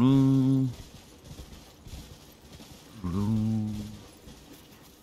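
Hooves trot softly through tall grass.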